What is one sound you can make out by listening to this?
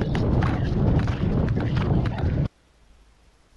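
Strong wind buffets the microphone.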